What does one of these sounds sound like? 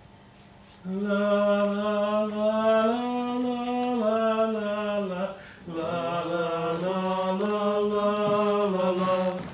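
A woman sings a long, sustained melody.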